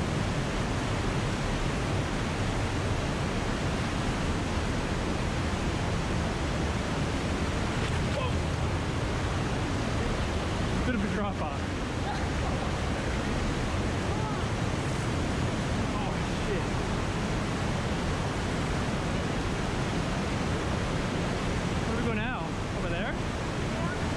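A river rushes loudly over rocks, echoing between close rock walls.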